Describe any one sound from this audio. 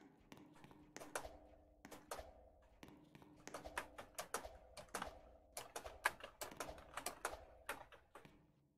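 Footsteps tap on hard ground at a steady walking pace.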